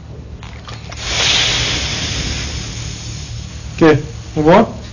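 Steam hisses from an iron.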